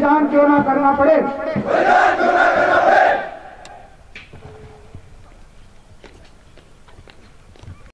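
Boots stamp and crunch on the ground as a small group marches past.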